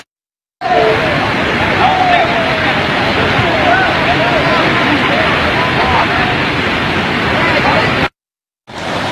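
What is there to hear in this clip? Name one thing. Several men shout and call out nearby outdoors.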